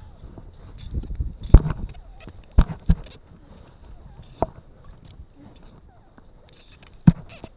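A fishing reel clicks and rattles as a hand handles it.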